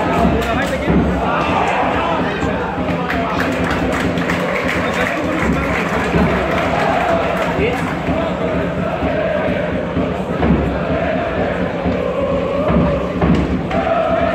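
A crowd of fans sings and chants loudly outdoors.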